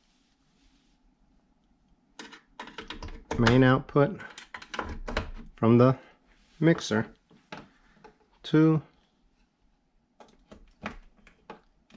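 Cable plugs click into sockets.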